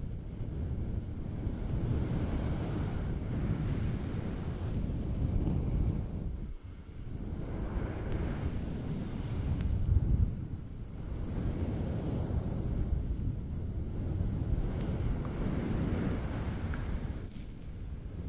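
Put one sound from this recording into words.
Fingertips rub and scratch a furry microphone windscreen right up close, with a deep rumbling rustle.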